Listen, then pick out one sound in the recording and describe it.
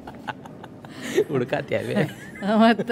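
An elderly woman laughs close by.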